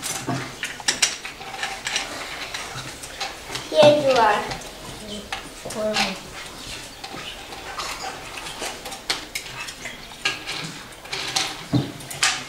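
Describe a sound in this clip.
Cutlery clinks and scrapes on a plate.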